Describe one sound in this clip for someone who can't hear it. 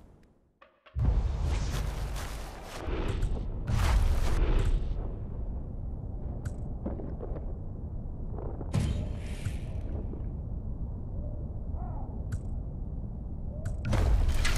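Wind rustles through tall grass outdoors.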